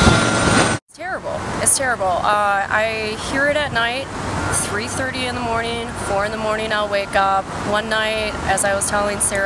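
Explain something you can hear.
A young woman speaks calmly close to a microphone, outdoors.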